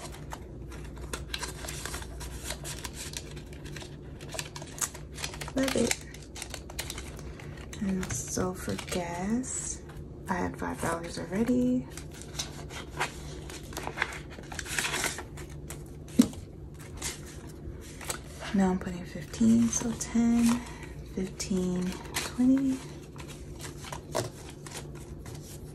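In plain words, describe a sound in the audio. Plastic sleeves crackle as they are opened and shut.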